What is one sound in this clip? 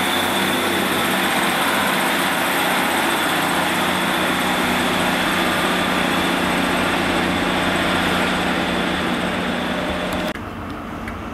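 A diesel train rumbles past and pulls away.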